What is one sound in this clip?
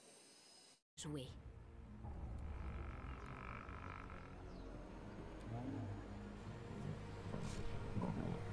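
Lions growl and snarl close by.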